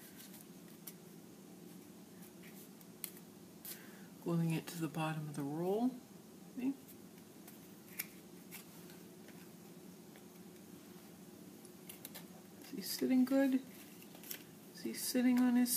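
Paper rustles softly as it is folded and handled.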